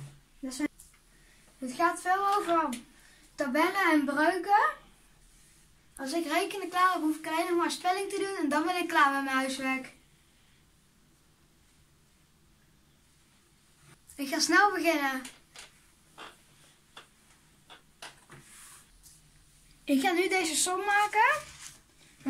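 A young boy talks calmly and close by.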